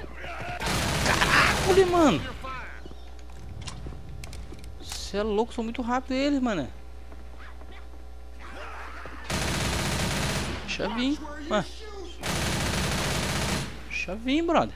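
A submachine gun fires rapid bursts at close range.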